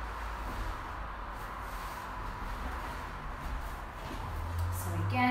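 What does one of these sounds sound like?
A towel slides and rustles across a floor mat.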